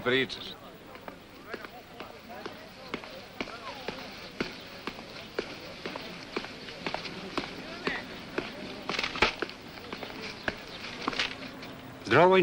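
Footsteps walk steadily on pavement.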